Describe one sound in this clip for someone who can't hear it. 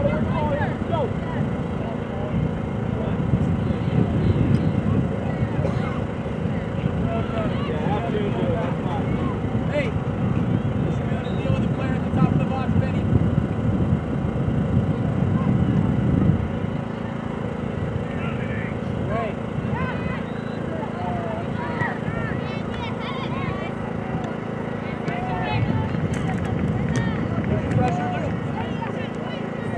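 Young women shout and call out across a playing field in the distance.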